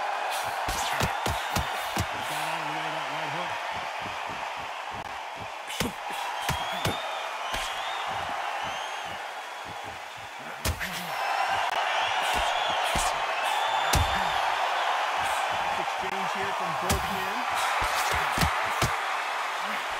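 Boxing gloves thud against bodies in quick punches.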